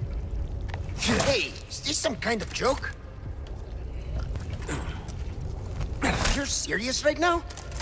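A man asks a question in a rough voice.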